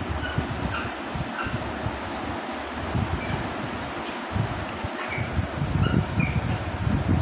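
A parrot's beak pecks and taps against a bowl.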